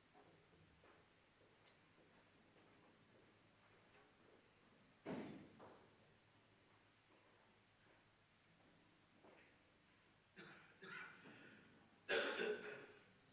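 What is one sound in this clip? An elderly man speaks quietly at a distance in a large echoing room.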